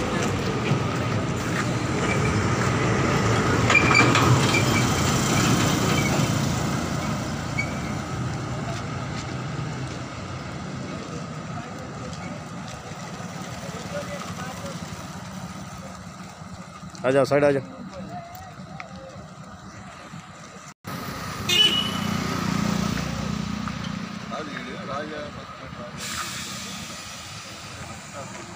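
Traffic passes on a road nearby.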